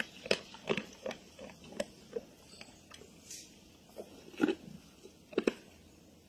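A wild boar snuffles and crunches food from the ground close by.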